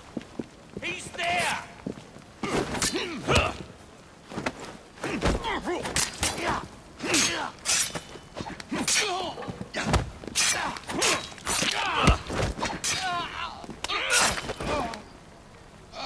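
Punches and kicks thud hard in a fast fistfight.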